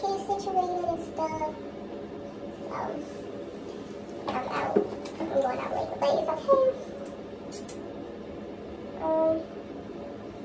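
A young woman talks calmly close by, with pauses.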